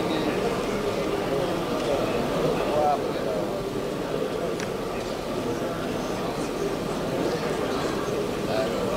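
A man speaks steadily into microphones in a large room.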